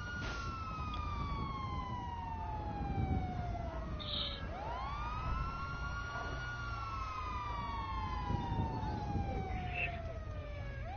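Police sirens wail nearby, rising and falling.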